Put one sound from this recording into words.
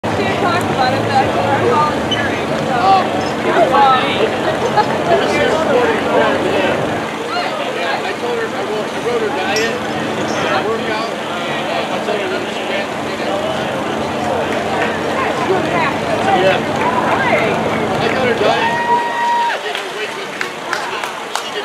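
A crowd of men and women chatter and call out nearby outdoors.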